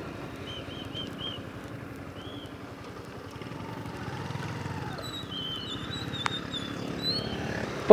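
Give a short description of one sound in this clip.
A motorcycle engine roars steadily close by.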